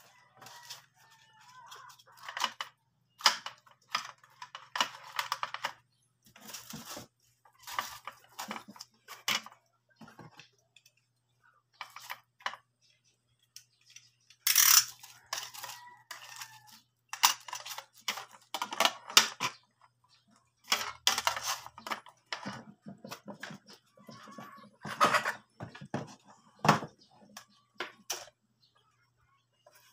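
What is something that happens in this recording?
Small tools and boxes clatter and rattle on a wooden table.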